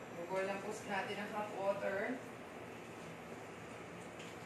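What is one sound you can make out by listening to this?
Water pours from a kettle into a pot.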